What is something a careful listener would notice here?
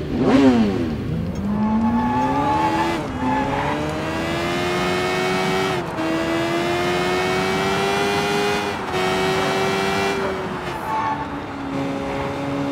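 A motorcycle engine roars and shifts through gears as the bike speeds along.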